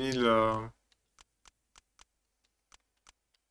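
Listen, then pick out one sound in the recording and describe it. Short soft clicks sound as a game menu scrolls.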